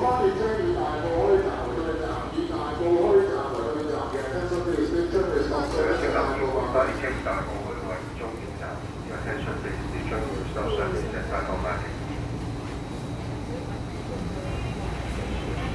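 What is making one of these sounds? A train hums steadily at rest.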